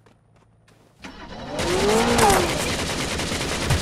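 A racing car engine roars close by, revving loudly.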